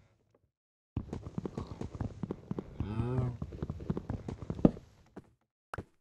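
A pickaxe chops rapidly at wood.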